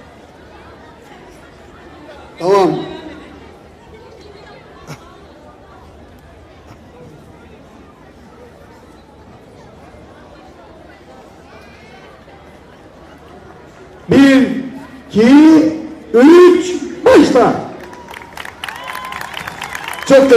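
A crowd of children and adults chatters softly outdoors.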